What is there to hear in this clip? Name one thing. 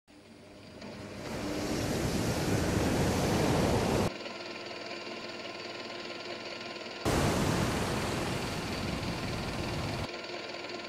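Wind blows hard across a ship's deck.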